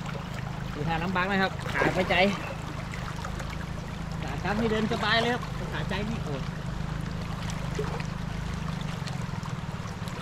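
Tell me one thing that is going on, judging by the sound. Water sloshes as a man wades through a flooded stream.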